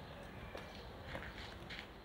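Footsteps walk on a stone pavement.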